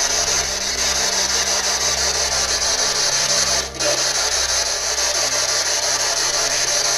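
A handheld radio hisses loudly with steady, crackling static that pulses quickly.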